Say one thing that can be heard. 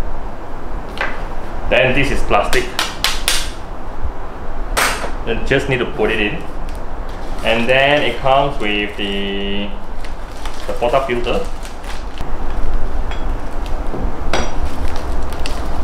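Metal and plastic parts clink and knock as they are handled.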